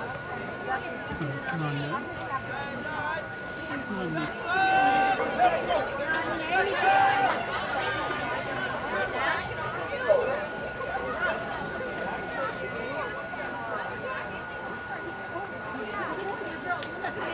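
Spectators nearby shout and cheer with animation outdoors.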